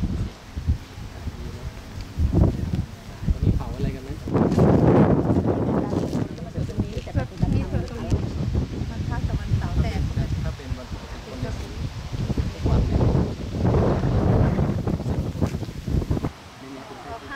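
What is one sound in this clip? Wind blows loudly across an open space outdoors.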